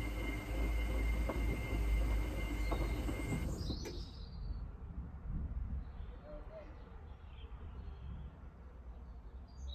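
A washing machine drum turns with a low hum.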